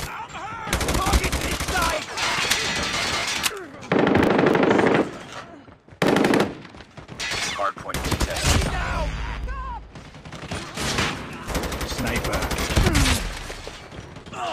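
Rapid gunfire bursts loudly.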